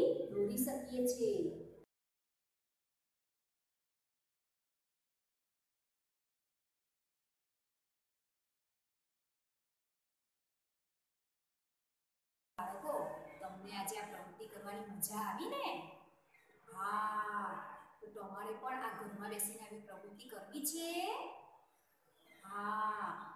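A young woman speaks clearly and steadily, close to the microphone.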